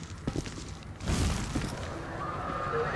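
A burst of flame roars briefly.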